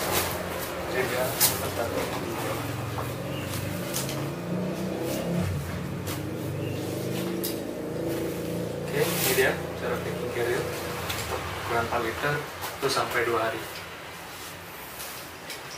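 Backpack straps and fabric rustle and click as they are handled.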